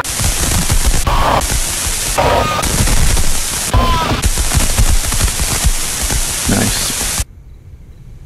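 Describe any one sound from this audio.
Loud static hiss crackles.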